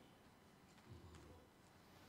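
An elderly man speaks calmly into a microphone, heard over a loudspeaker in an echoing room.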